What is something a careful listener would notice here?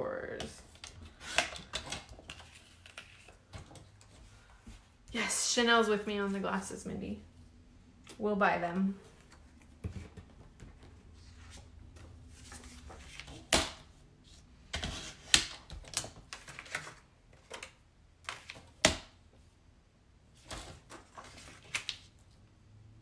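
A paper trimmer blade slides and clicks across paper.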